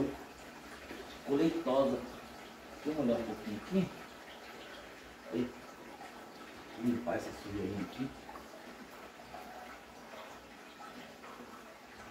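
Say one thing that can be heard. An aquarium filter bubbles softly.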